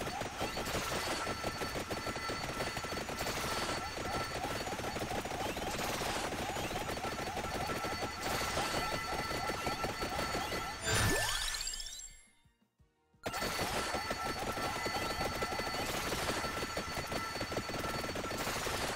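Rapid video game hit sounds patter and crackle without pause.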